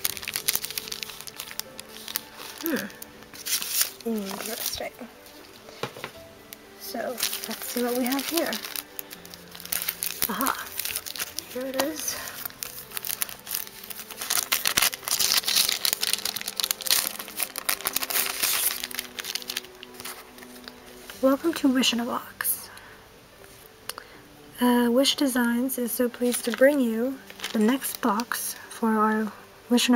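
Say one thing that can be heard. Plastic sleeves and paper crinkle and rustle as hands handle them.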